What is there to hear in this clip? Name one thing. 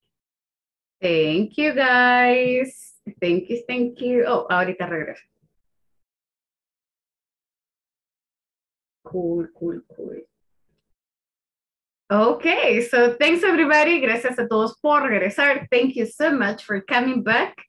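A young woman speaks with animation into a headset microphone, heard through an online call.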